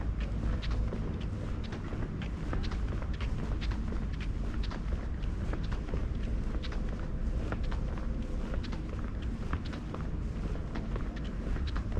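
Footsteps tap steadily on paving stones.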